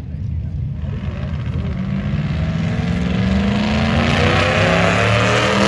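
A race car engine roars loudly as a car passes close by.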